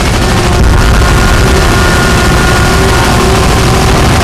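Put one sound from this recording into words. Helicopter rotors thump overhead.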